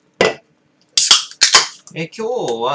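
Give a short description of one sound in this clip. A ring-pull on an aluminium beer can snaps open with a hiss.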